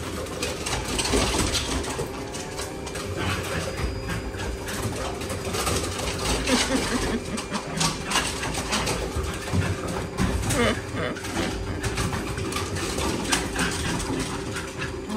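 A dog paddles and splashes through the water.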